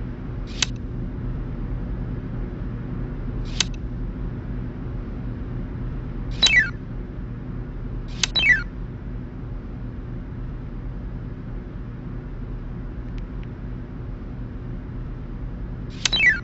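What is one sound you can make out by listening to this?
Short electronic chimes ring out as puzzle tiles are placed.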